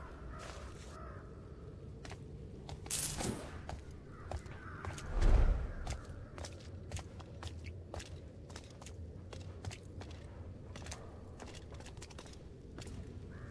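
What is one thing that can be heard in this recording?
Footsteps creak softly on wooden boards.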